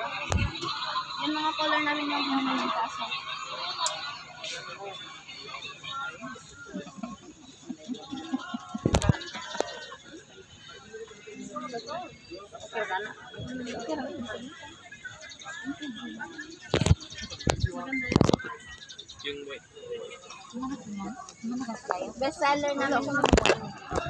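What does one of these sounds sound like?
Young girls chat and talk nearby.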